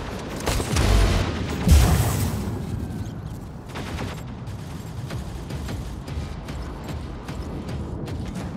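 A heavy machine rumbles with a low, steady hum.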